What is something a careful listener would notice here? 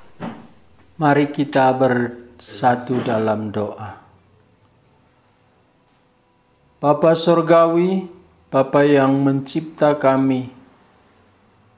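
A middle-aged man sings in phrases close to a microphone.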